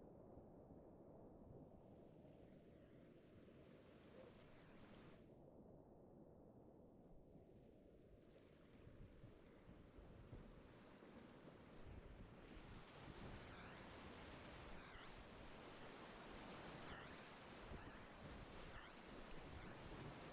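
Rushing rapids roar loudly close by, growing louder.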